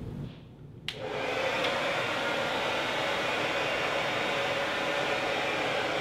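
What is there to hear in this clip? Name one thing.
A hair dryer blows with a steady whirring roar.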